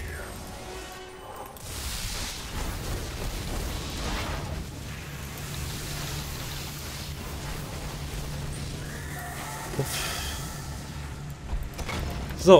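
Magic spells crackle and whoosh in bursts.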